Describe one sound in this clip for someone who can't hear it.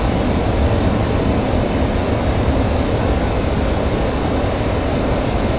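A twin-engine jet fighter roars in flight, heard from inside the cockpit.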